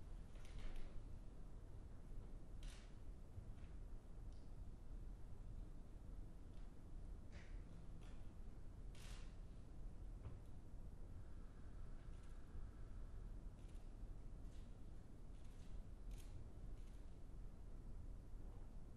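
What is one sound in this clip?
A large standing crowd rustles and shuffles faintly in a quiet hall.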